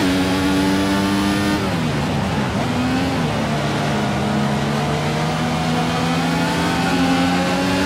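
A racing car engine screams at high revs, drops sharply as the driver shifts down and brakes, then climbs again.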